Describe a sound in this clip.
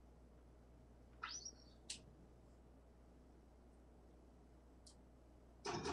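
Darts thud into a dartboard.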